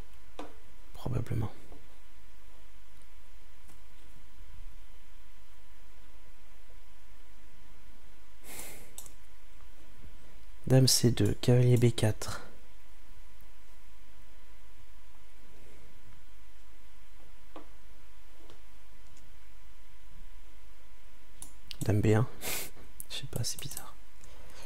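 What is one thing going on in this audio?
A man speaks briefly and calmly into a close microphone, with long pauses.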